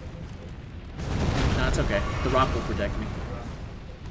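A giant creature lets out deep, rumbling groans.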